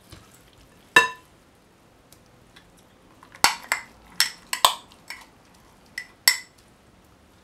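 A spoon clinks against a glass jar.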